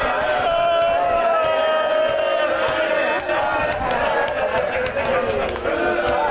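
A man chants loudly in a mournful melody through a microphone and loudspeakers.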